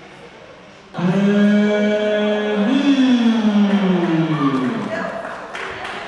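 A man announces loudly over a loudspeaker in a large echoing hall, drawing out his words.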